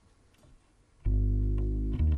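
A double bass is plucked with deep notes.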